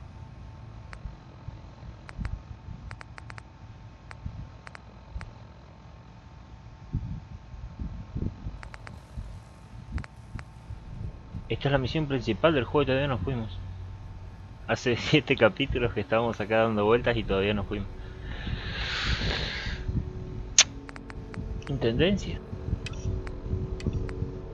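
A dial clicks as it is turned.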